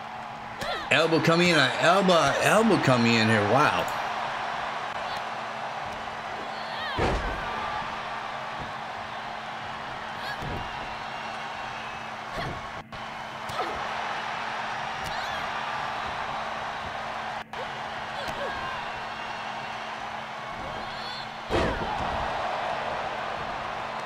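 An arena crowd cheers and murmurs steadily.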